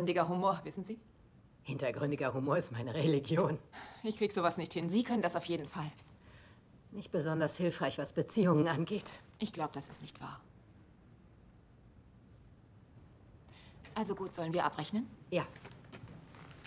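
A middle-aged woman speaks quietly in reply.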